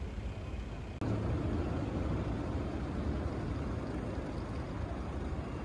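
City traffic hums in a busy street.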